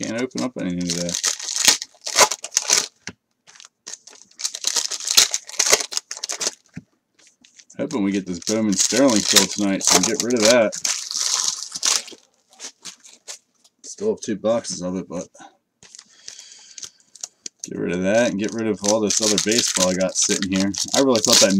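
Foil wrappers crinkle and tear as packs are opened.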